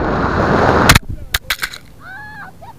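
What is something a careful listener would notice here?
A model rocket thumps onto the ground.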